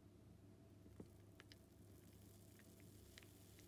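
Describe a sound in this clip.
Milk pours from a carton into a mug with a soft gurgle.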